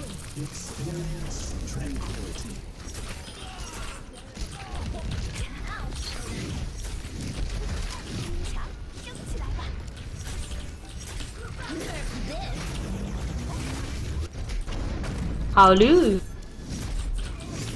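A video game gun fires rapid bursts of shots.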